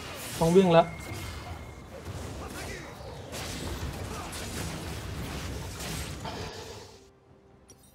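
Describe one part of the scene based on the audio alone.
Magic blasts and sword strikes clash in a fast video game battle.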